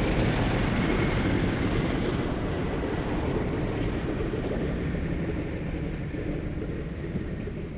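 Propeller engines of a flying boat drone loudly overhead and slowly fade.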